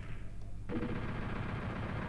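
A shotgun fires in a video game.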